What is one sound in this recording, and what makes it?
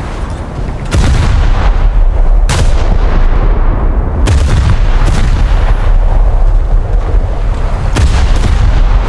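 Heavy guns fire with loud booming blasts.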